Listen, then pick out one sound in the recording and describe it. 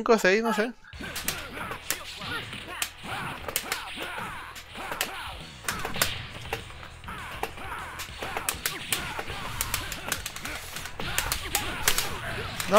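Punches and energy blasts crack and thump in a fighting game.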